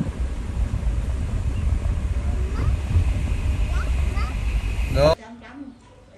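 Wind rumbles past a moving car window.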